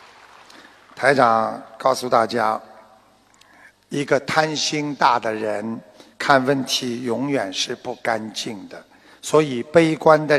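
An elderly man speaks with animation into a microphone, heard through loudspeakers.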